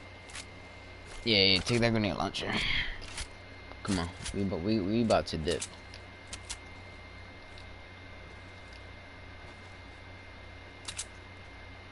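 Footsteps patter across grass.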